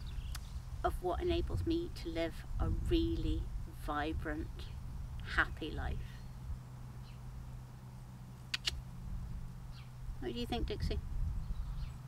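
A middle-aged woman speaks calmly and softly, close by.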